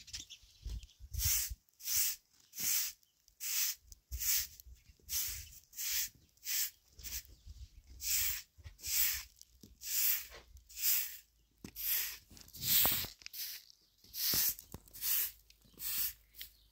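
A straw broom sweeps dry ground in quick, steady rhythmic swishes.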